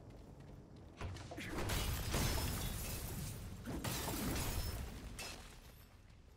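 A loud rushing whoosh sweeps past during a climb.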